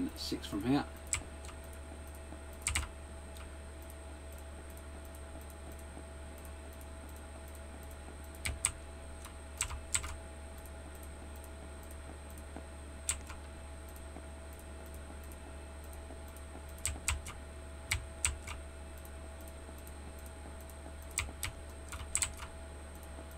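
Game blocks are placed with short soft clicks, every few seconds.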